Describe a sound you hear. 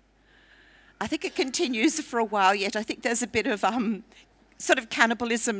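An elderly woman speaks calmly through a headset microphone.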